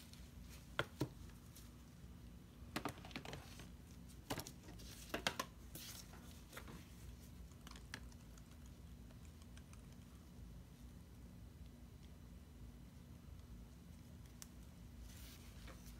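A plastic squeeze bottle squirts acrylic paint with soft sputters.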